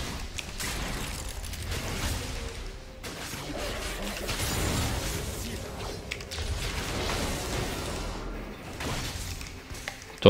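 Video game battle effects crackle and clash.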